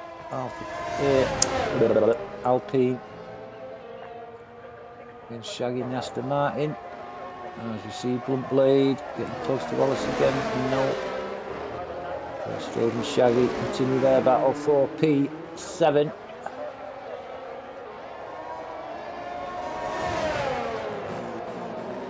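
Racing cars whoosh past close by.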